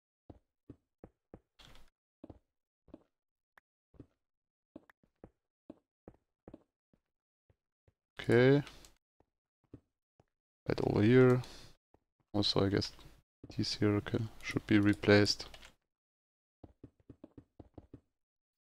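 Footsteps tap on stone at a steady pace.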